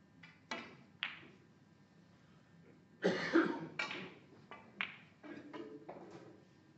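Snooker balls click together on the table.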